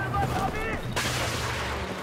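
Bullets smack into a concrete wall.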